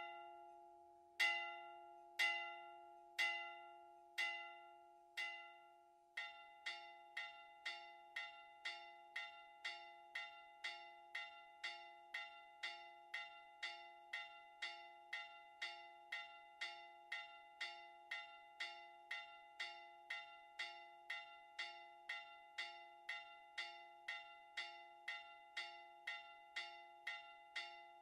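A church bell tolls slowly, then rings in quick, steady strokes that ring on.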